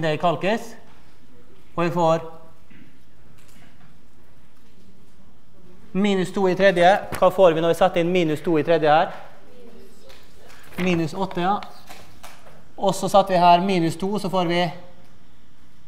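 An elderly man lectures calmly through a microphone in an echoing hall, pausing between phrases.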